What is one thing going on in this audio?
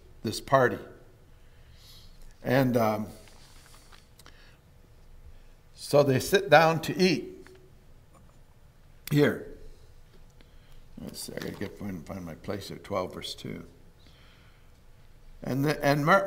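An older man speaks slowly and calmly through a microphone in a large echoing hall.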